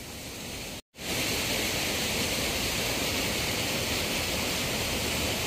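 Water rushes steadily over rocks.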